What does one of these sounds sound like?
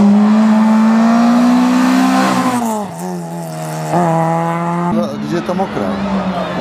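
A rally car engine revs up and down as the driver shifts gears.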